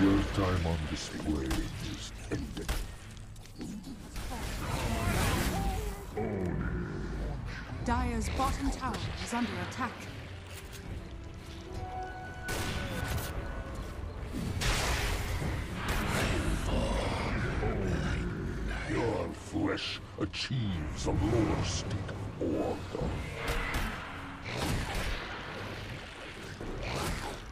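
Spells crackle and blast during a game's fight.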